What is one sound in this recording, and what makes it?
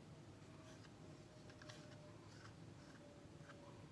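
A wooden stick stirs paint in a small plastic cup.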